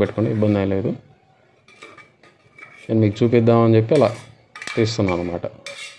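Cooked food slides from one metal pot into another.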